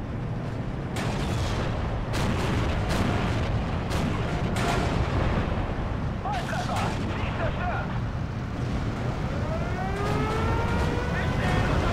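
Gunfire and explosions boom and crack.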